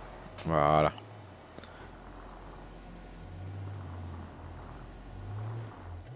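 A garage door rolls open.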